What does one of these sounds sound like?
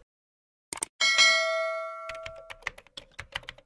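A small bell rings brightly and fades.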